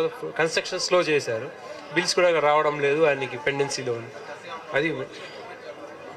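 A man speaks with animation into a microphone, heard over a loudspeaker.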